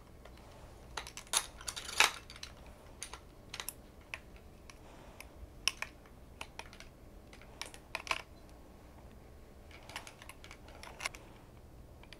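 Metal crutch parts click and clack as they are adjusted.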